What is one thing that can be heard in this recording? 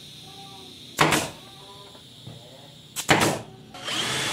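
A nail gun fires with sharp snaps.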